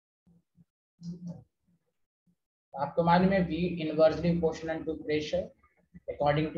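A man explains in a lecturing tone through a microphone.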